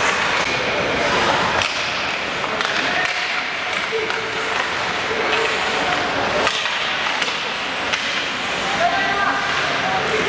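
Spectators murmur and chatter nearby.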